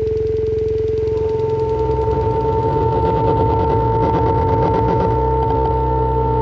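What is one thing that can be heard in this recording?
A second steady electronic tone joins and the music grows busier.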